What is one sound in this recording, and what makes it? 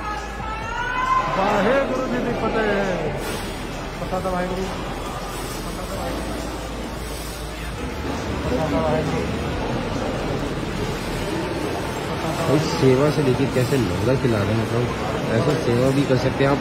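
A crowd of people murmur and chatter in a large echoing hall.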